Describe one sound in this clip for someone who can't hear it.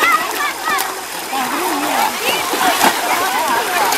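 Children splash in shallow water.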